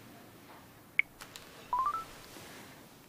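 A phone gives a few short beeps.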